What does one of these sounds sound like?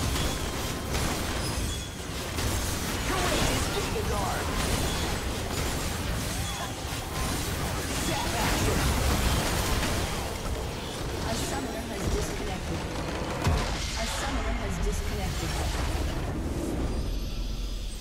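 Game spell effects crackle and boom in a busy battle.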